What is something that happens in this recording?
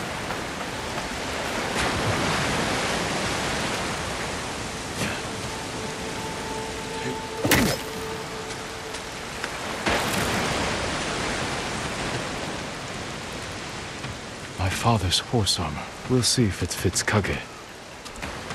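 Heavy rain pours down in a strong wind.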